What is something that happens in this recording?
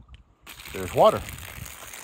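Water trickles from a hand pump spout.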